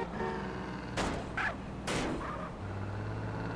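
Tyres screech briefly as a car turns.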